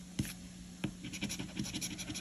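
A coin scratches rapidly across a card.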